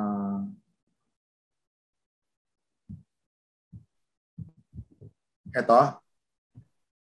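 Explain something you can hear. A man speaks through an online call, in short bursts.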